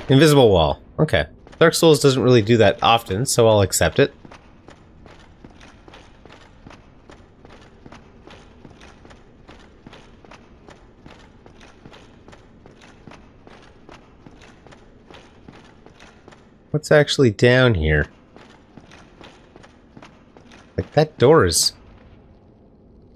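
Heavy armoured footsteps thud steadily on stone.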